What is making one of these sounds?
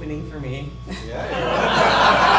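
A woman laughs loudly into a microphone.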